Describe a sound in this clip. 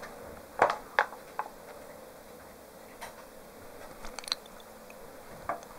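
A cat's paws tap softly on a wooden table.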